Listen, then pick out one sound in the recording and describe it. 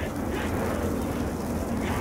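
Flames crackle on a burning creature.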